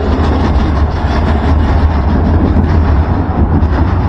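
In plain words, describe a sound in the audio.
A tram rolls past.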